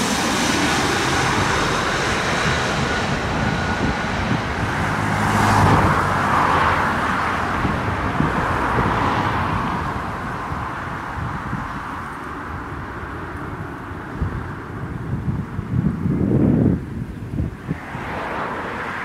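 Jet engines rumble as an airliner lands on a runway.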